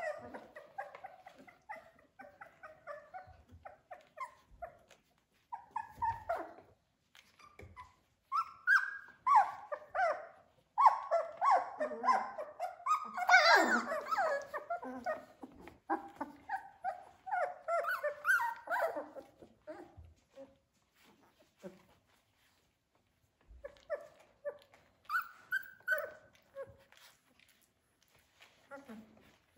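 Several young puppies whine and yelp close by, now and then in loud bursts.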